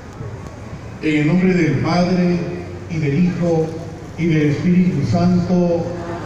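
A man speaks into a microphone over a loudspeaker outdoors, reading out calmly.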